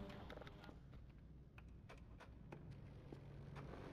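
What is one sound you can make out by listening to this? A keyboard clicks in short taps.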